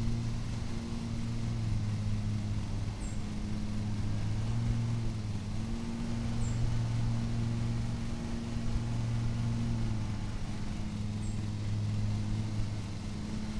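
A lawn mower engine drones steadily.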